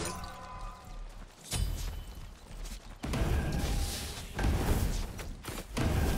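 Weapons clash and strike in a video game fight.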